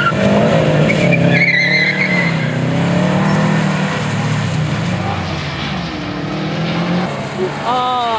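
Tyres hiss and swish on a wet surface.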